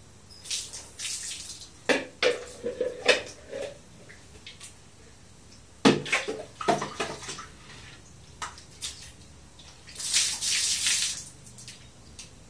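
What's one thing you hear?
Water splashes onto a tiled floor.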